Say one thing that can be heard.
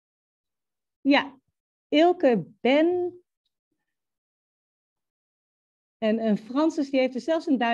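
A young woman speaks calmly through a headset microphone on an online call, with pauses.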